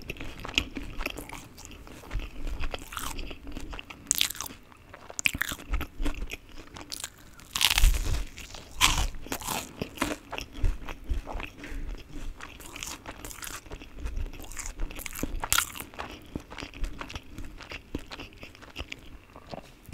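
A young woman chews food with wet, sticky sounds close to a microphone.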